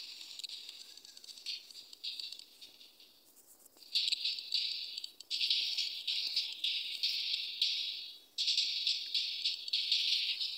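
Small game creatures pop into place with quick, high chirping sounds.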